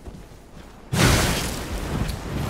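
A blade slashes with a heavy impact.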